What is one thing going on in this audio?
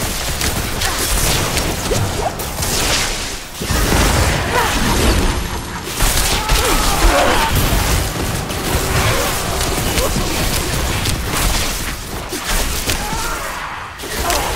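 Weapons clash and strike in a fierce fight.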